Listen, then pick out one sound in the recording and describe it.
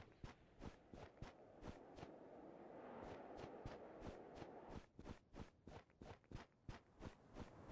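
Footsteps rustle steadily through tall grass.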